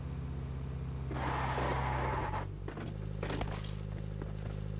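A car door opens and shuts with a clunk.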